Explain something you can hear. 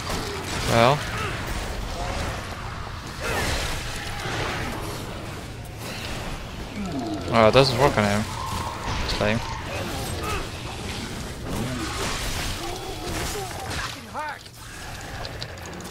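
Monsters scream and growl.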